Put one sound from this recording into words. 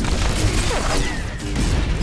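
Electric lightning crackles and buzzes.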